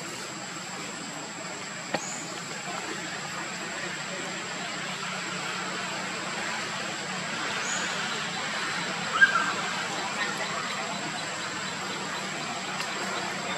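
Leaves rustle as a monkey climbs through a tree.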